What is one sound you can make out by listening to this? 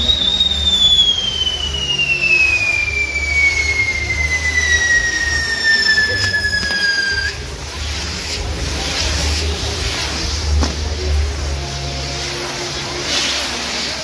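A spinning firework wheel hisses and roars as it throws sparks.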